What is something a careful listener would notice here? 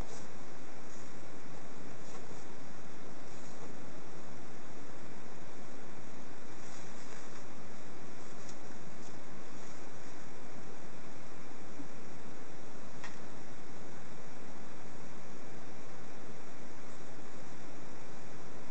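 Plastic wrapping rustles and crinkles as a hand handles it.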